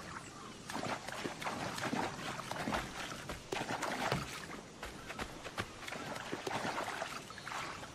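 Footsteps run over sand.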